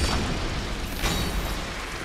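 Flames burst with a roaring whoosh.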